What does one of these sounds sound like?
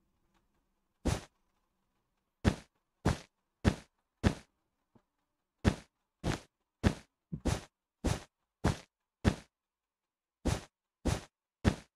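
Blocks thud softly as they are placed one after another at a steady pace.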